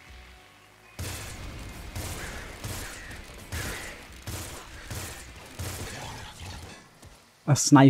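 Gunfire crackles rapidly in a video game.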